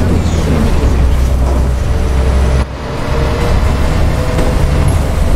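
A bus engine hums steadily with a low drone.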